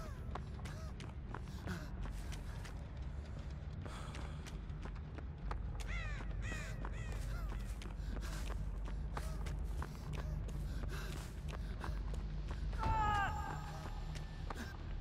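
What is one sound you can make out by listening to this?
Footsteps crunch quickly through snow and dry grass.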